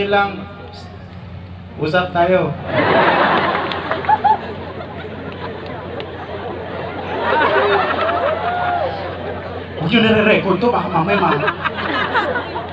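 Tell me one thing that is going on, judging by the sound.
A large crowd chatters and calls out outdoors.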